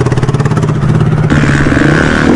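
A dirt bike engine idles with a rapid, sputtering putter.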